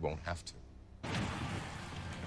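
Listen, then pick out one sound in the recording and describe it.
An explosion bursts in a video game.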